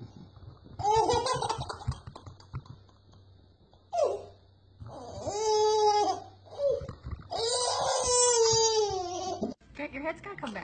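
A toddler laughs and squeals loudly close by.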